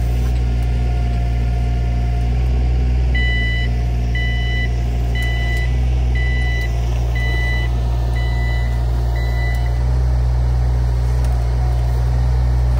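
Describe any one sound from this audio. A digger's diesel engine rumbles steadily close by.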